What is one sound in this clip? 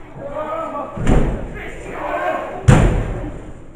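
A wrestler slams heavily onto the ring mat with a loud thud.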